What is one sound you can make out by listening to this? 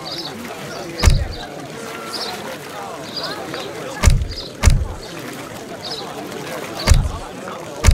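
Soft clicks with a dull thump sound a few times.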